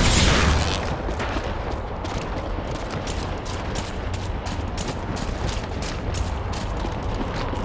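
Footsteps tread steadily.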